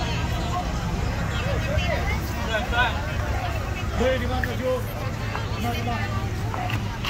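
Young men talk and call out nearby.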